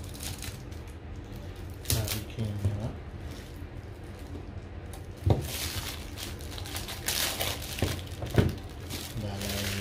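Plastic wrapping crinkles and rustles as hands tear it off a box.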